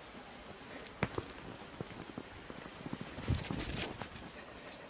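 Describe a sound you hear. A dog bounds through deep snow, its paws crunching and thudding.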